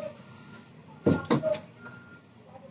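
Plastic parts knock and clatter.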